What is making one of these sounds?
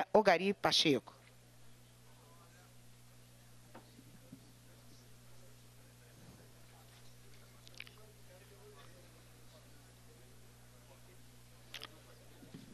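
Men murmur quietly in a room.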